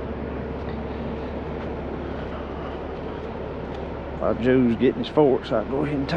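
Footsteps crunch on sandy ground.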